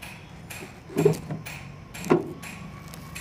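A hand taps on a metal cover.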